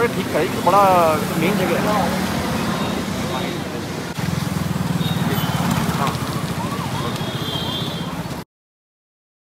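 A man talks on a phone close by.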